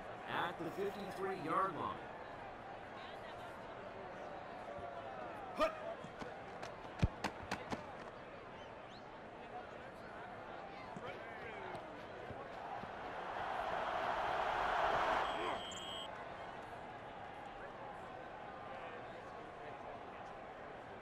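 A stadium crowd murmurs steadily throughout.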